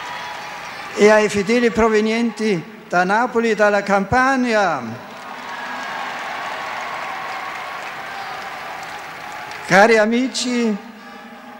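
An elderly man chants through a loudspeaker in a wide open space.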